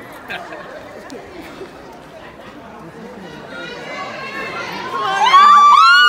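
An audience murmurs in a large hall.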